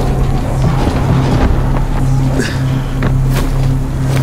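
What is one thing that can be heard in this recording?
Footsteps thud quickly across a rooftop.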